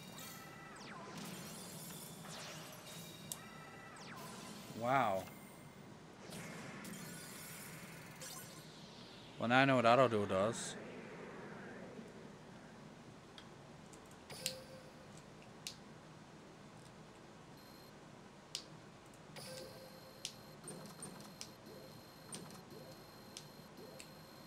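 Electronic game sound effects whoosh and chime.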